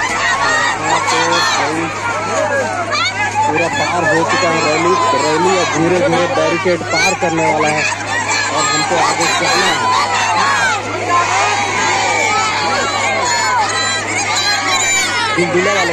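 A large crowd of men and women chatters and shouts close by outdoors.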